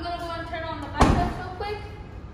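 A car tailgate shuts with a thud.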